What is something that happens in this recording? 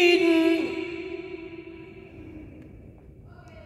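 A man sings a long held note through a microphone, with loud reverberation that slowly fades.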